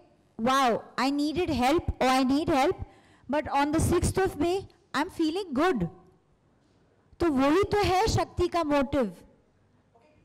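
A woman speaks with animation into a microphone, close and loud.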